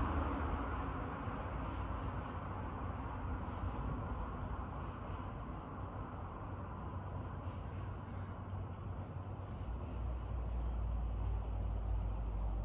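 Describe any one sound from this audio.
Wind blows outdoors and rustles the trees.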